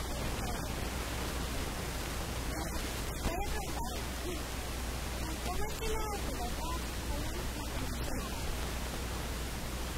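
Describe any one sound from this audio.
A young person asks questions into a microphone.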